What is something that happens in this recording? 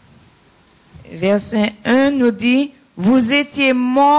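A woman sings through a microphone and loudspeakers.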